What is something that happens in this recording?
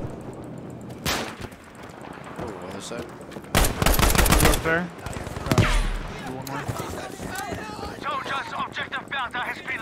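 Gunshots crack loudly.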